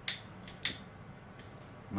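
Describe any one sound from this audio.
A lighter clicks.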